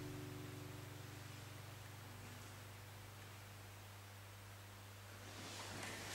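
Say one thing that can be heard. A classical guitar's last chord rings out and slowly fades.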